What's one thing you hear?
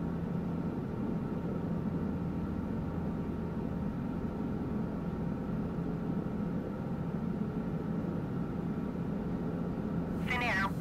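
A small propeller plane's engine drones steadily.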